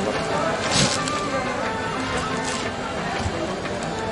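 A plastic net bag of onions rustles as a hand handles it.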